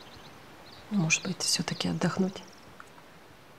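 A middle-aged woman speaks quietly nearby.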